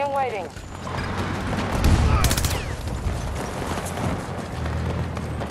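Distant gunfire and explosions rumble throughout.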